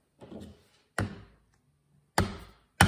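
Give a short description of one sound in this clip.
A mallet strikes a metal punch through leather.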